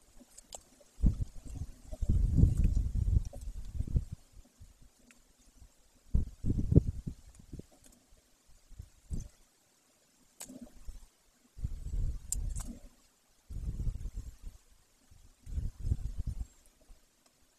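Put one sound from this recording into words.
A large bird tears and plucks at prey, with soft rustling and ripping.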